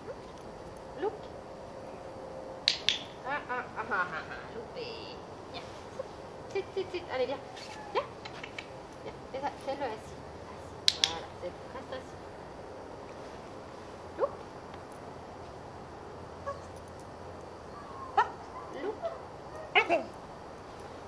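A woman gives short commands to a dog, speaking calmly nearby.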